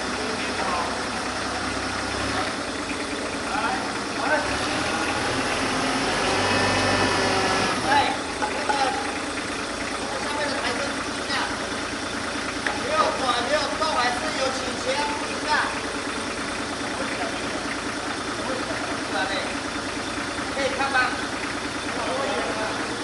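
Men call out to each other outdoors.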